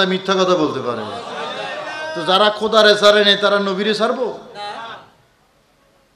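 A man chants in a melodic voice into a microphone, heard through a loudspeaker with echo.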